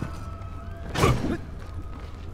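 A blade slashes with a sharp, loud whoosh.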